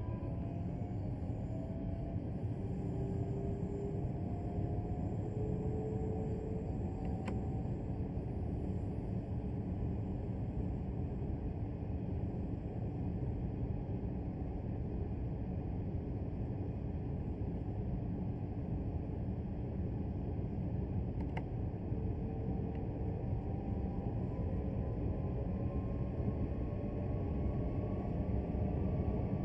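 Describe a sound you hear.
A train's electric motor whines, its pitch slowly rising as it speeds up.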